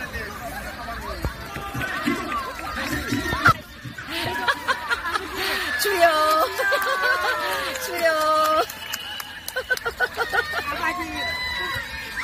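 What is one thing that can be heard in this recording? A crowd of children and adults shouts and calls out across an open outdoor field.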